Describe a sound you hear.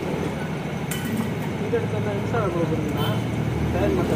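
A metal tool clicks against a wheel rim.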